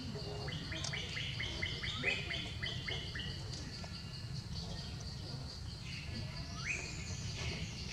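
A baby monkey squeaks in quick high chirps.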